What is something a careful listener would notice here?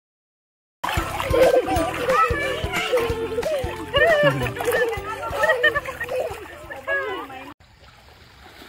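A little girl squeals and giggles close by.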